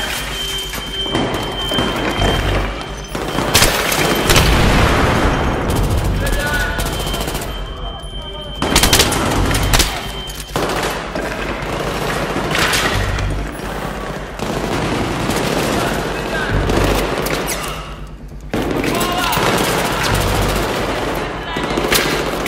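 Rifle gunfire rattles in loud bursts.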